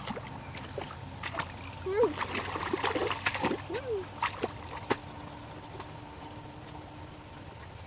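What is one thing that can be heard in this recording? Feet slosh through shallow water.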